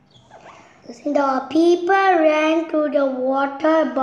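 A young boy reads aloud clearly over an online call.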